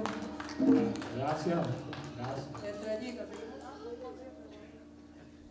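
A live band plays music in a large hall, then stops.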